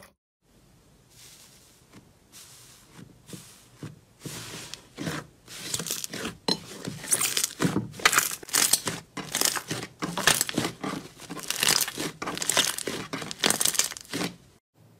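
Soft slime squishes, crackles and pops as hands press and knead it.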